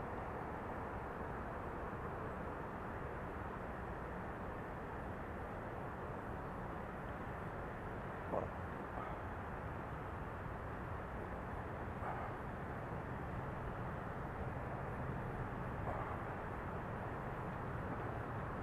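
Wind rumbles steadily against the microphone while moving outdoors.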